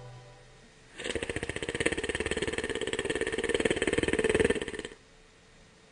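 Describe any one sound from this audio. Someone snores loudly.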